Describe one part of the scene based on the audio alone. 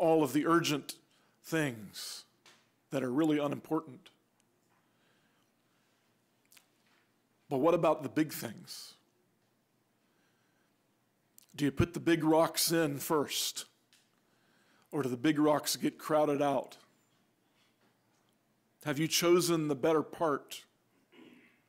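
A middle-aged man speaks calmly into a microphone in bursts, with pauses between phrases.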